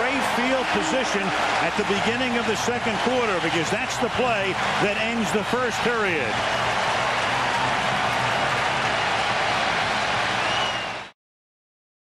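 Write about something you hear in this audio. A large crowd roars loudly in a stadium.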